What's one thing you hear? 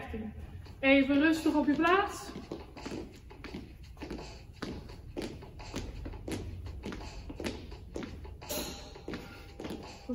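Shoes tap and shuffle on a hard floor in a steady rhythm.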